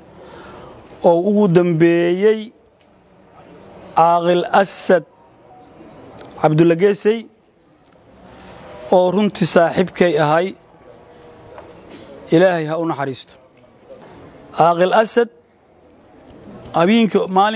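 An elderly man speaks with animation into a close microphone, in short bursts.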